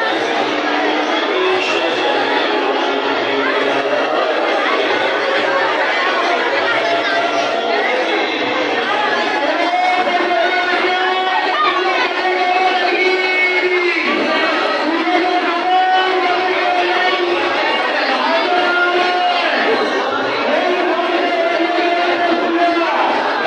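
A large crowd of men and women talks and calls out all at once, close by, in a loud echoing hall.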